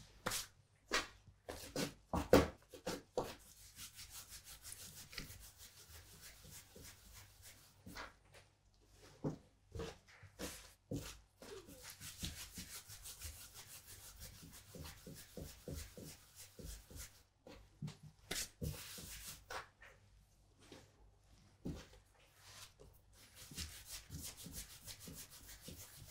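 Hands pat and press soft dough on a wooden board.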